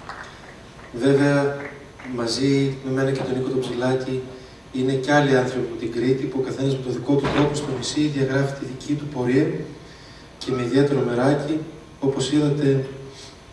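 A young man sings into a microphone, heard through loudspeakers.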